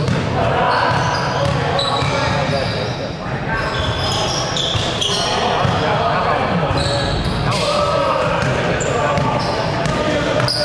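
Sneakers squeak sharply on a hard court floor.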